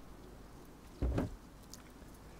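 A wooden chest lid thuds shut.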